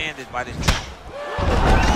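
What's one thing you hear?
A kick lands with a sharp thud.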